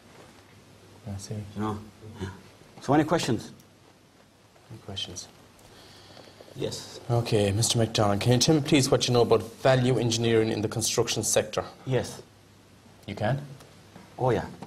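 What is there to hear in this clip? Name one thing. A second man speaks briefly in reply.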